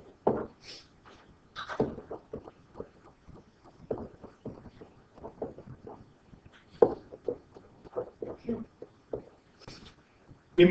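A pen taps and scratches quickly on a hard writing surface.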